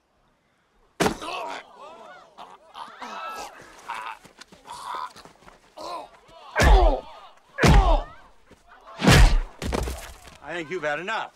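A young man grunts and shouts while fighting.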